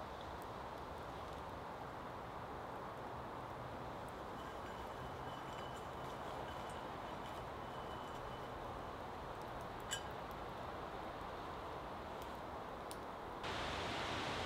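A small wood fire crackles.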